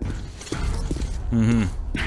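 Heavy boots step on a hard floor.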